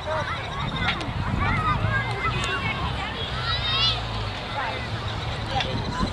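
Children shout and call out excitedly nearby.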